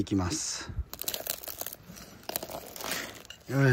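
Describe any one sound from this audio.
A metal tool scrapes and clicks against hard shells.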